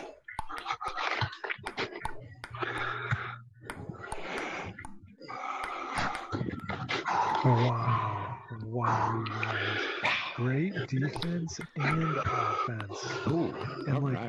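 A table tennis ball clicks sharply as it bounces on a table.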